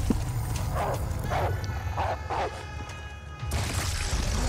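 A wolf howls loudly.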